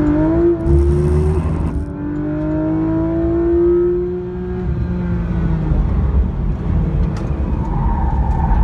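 A race car engine roars loudly from inside the car, shifting gears and revving up and down.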